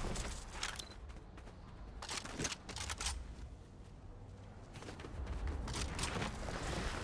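Footsteps crunch quickly over dirt and grass.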